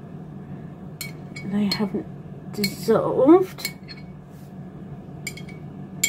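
A metal spoon clinks against a glass jar.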